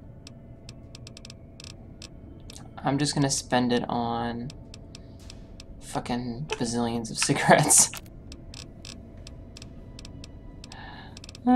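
Soft menu clicks tick rapidly.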